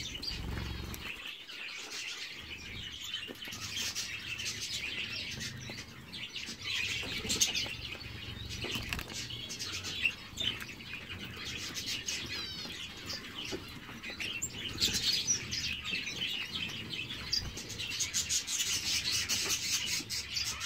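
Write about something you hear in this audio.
Small finches peck and rustle at seed in a tray.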